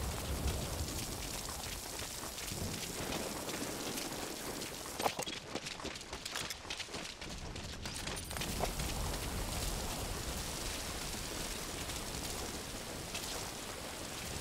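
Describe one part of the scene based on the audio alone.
Footsteps splash through wet ground.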